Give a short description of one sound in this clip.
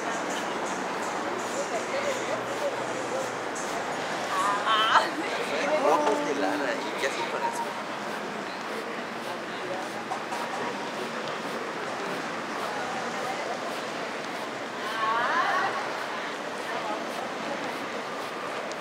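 Faint city street noise hums steadily outdoors.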